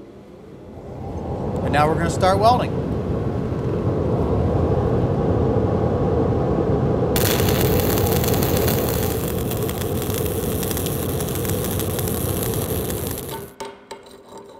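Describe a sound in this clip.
A welding arc crackles and hisses loudly.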